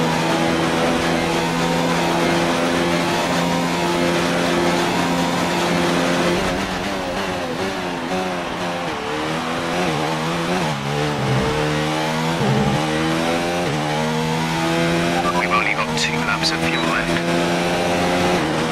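A racing car engine screams at high revs, dropping in pitch as it slows for corners and rising again as it speeds up.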